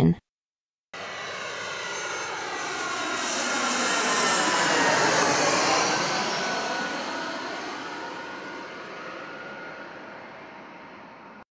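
A jet airplane roars low overhead, swelling and then slowly fading.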